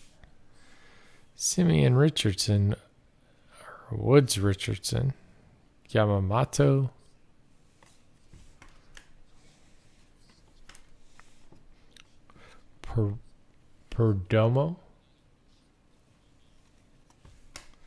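Trading cards slide and rustle against each other in someone's hands.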